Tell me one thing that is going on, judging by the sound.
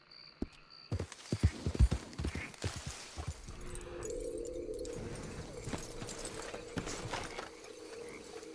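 Hooves thud on soft ground as a horse walks.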